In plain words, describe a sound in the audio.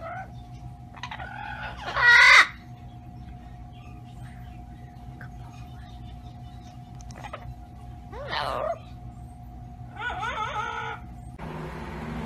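A parrot squawks and chatters loudly.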